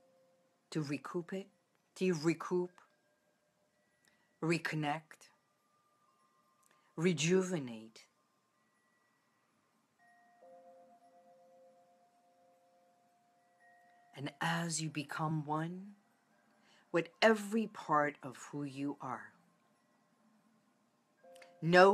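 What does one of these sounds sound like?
A middle-aged woman speaks close to the microphone, in short phrases with pauses.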